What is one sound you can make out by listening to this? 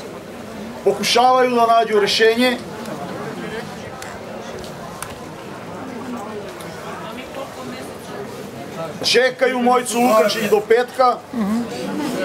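A man speaks loudly and with feeling close to a microphone.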